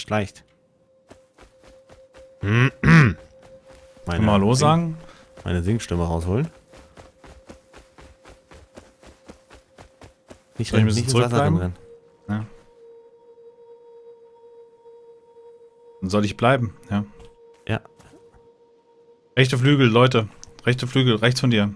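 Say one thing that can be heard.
Footsteps crunch through dry grass and sand.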